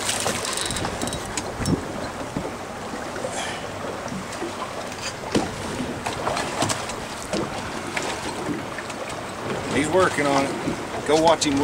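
A fishing reel clicks and whirs as it is cranked.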